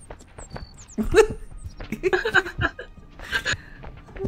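A woman laughs into a close microphone.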